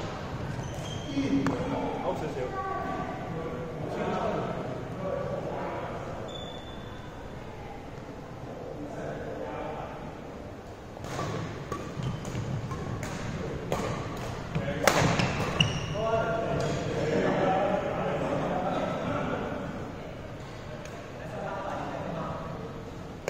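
Young men talk and call out across the hall.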